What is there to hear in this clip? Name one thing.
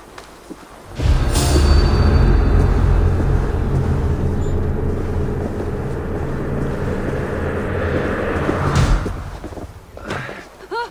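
A torch fire crackles and roars nearby.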